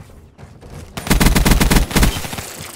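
An automatic rifle fires a rapid burst of loud shots.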